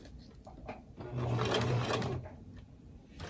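A sewing machine whirs briefly as it stitches.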